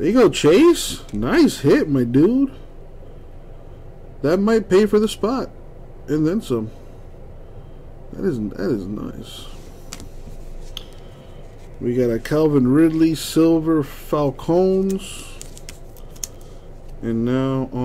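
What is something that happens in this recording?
Trading cards rustle and slide as hands handle them.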